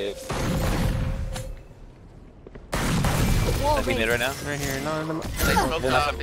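A magical ability whooshes and hums as it is cast.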